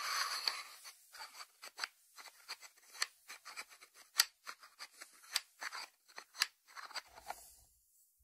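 Fingertips tap a ceramic lid.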